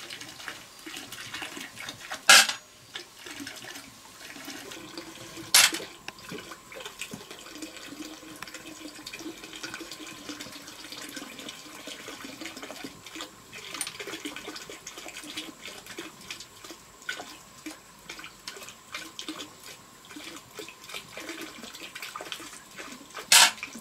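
A small stick scrapes inside snail shells.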